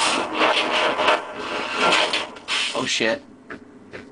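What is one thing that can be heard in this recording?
A heavy metal door grinds open.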